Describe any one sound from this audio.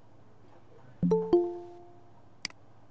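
An online call chimes with a short notification tone.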